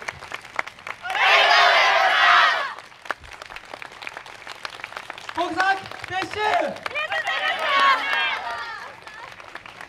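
A group of young women shout and chant together loudly, outdoors.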